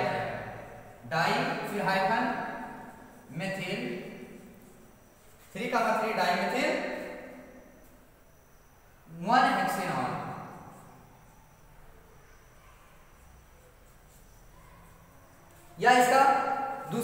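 A man speaks loudly in bursts, echoing in a bare room.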